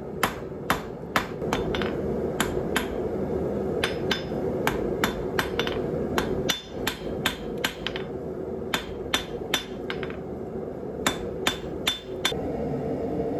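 A hammer strikes hot metal on an anvil with sharp ringing clangs.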